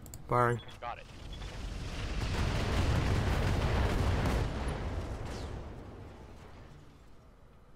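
Heavy weapon fire booms and rumbles in a long, swelling roar that slowly fades.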